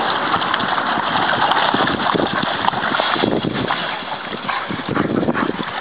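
Dogs scuffle and pant.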